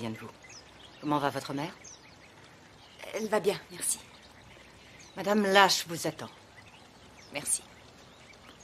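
An elderly woman speaks with emotion up close.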